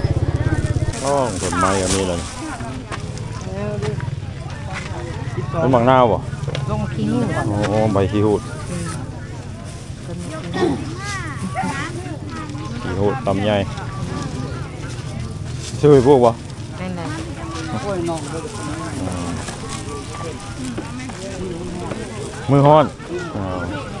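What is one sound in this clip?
Women chat nearby outdoors.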